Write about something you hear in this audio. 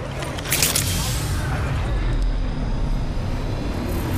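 A syringe hisses and clicks as it is injected.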